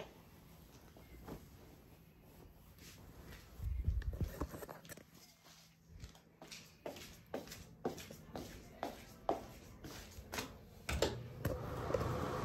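Cloth rustles and brushes close by.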